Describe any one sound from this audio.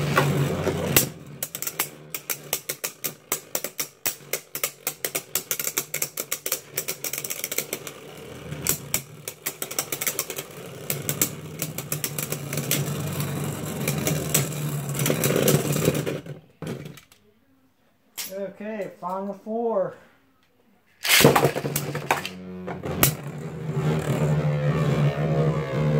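Spinning tops clack sharply as they knock against each other.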